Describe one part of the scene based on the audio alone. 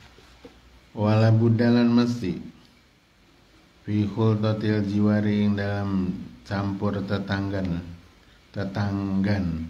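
A man recites in a melodic chant close by, in long phrases with pauses.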